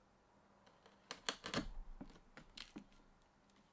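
A chisel scrapes and pares wood.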